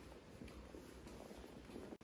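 Footsteps echo softly in a large hall.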